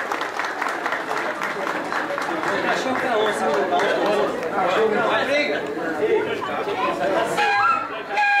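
A live band plays lively music with a steady beat.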